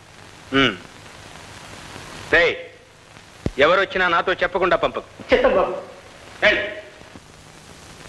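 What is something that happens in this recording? A middle-aged man speaks sternly in short, forceful bursts.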